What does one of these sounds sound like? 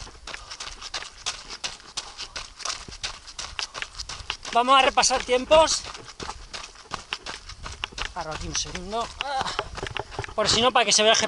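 Footsteps crunch on a dirt trail at a running pace.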